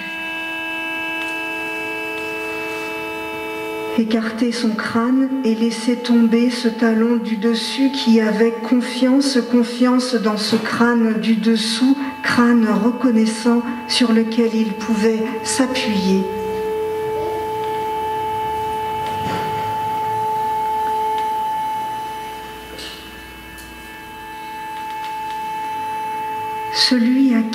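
An electric guitar plays sustained, droning notes through an amplifier.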